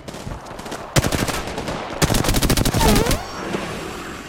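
Rapid gunfire bursts from a rifle in quick loud volleys.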